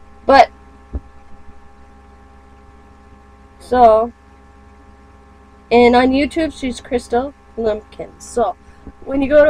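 A woman speaks close to a microphone in short bursts, then more steadily.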